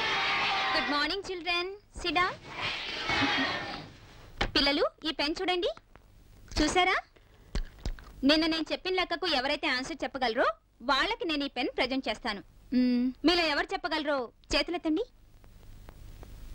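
A woman speaks clearly and firmly to a class.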